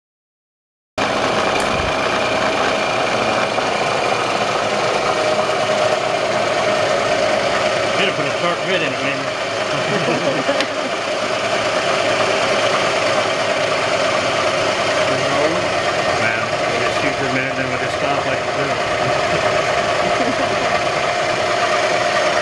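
A milling machine motor hums steadily.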